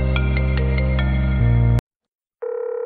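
A phone ringtone plays.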